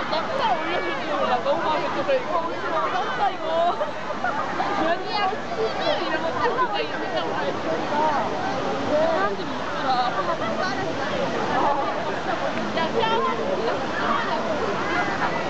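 A waterfall roars steadily in the distance.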